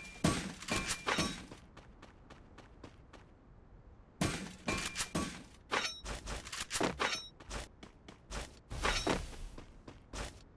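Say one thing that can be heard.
Quick footsteps run across the ground.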